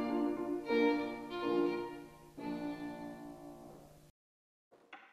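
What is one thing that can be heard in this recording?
A violin plays a melody.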